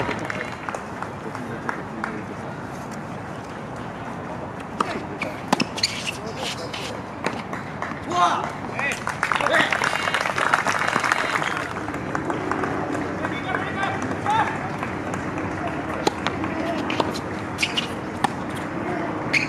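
Outdoors, sneakers squeak and scuff on a hard court.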